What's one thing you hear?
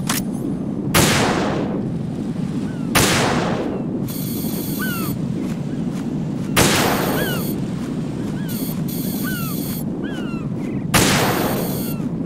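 A sniper rifle fires loud, echoing shots.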